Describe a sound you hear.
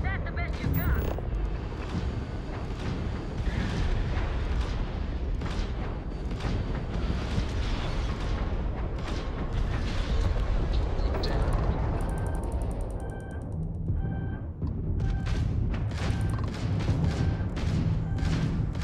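A spaceship engine rumbles deeply.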